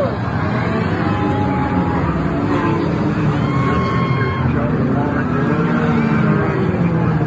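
Race car engines roar loudly around a track.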